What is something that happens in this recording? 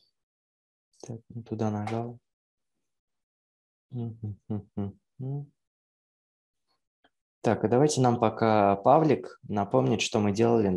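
A young man speaks calmly into a microphone, heard through an online call, in short bursts with pauses.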